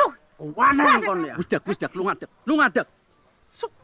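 A woman speaks sharply and angrily nearby.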